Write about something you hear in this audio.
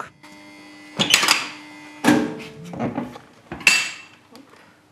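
A heavy metal kiln door clanks and scrapes open.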